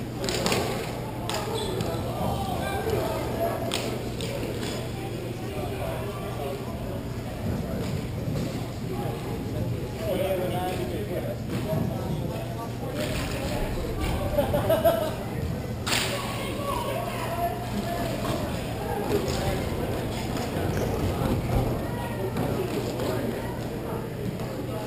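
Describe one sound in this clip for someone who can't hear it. Skate wheels roll and scrape on the floor in a large echoing hall.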